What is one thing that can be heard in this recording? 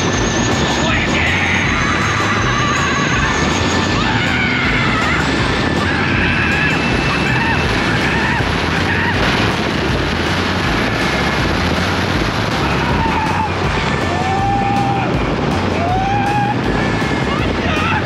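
A young man shouts and screams excitedly up close.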